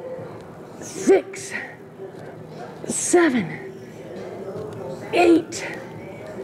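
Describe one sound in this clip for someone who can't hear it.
A young woman grunts with effort in short, regular bursts.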